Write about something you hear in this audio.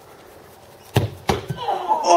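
A ball is kicked with a hard thud.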